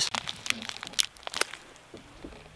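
A foil wrapper crinkles close by.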